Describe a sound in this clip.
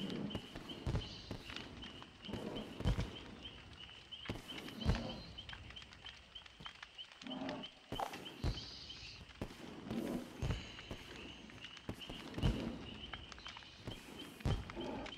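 Fireworks pop and burst overhead.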